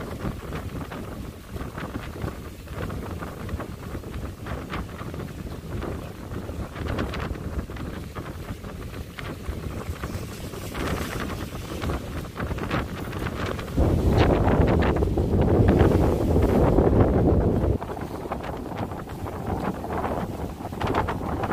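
Waves crash and roll steadily below.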